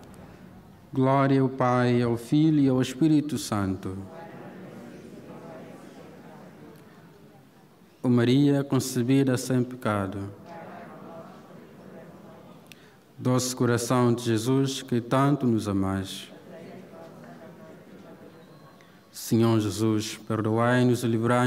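A man speaks in short phrases into a microphone, heard over loudspeakers in a large echoing hall.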